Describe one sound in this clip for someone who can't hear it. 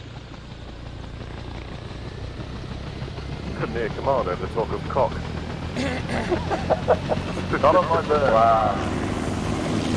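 A helicopter engine whines and its rotor spins up, thudding louder and faster.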